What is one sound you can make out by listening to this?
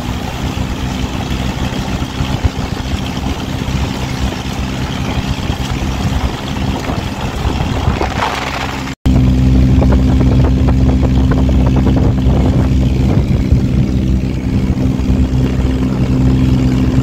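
A buggy engine hums steadily and loudly.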